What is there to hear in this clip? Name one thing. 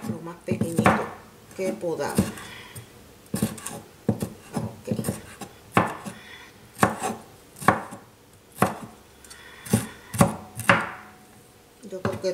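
A knife chops on a wooden board in steady, knocking strokes.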